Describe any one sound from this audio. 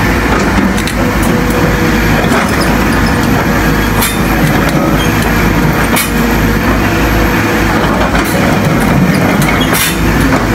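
An excavator bucket scrapes and knocks into rocky ground.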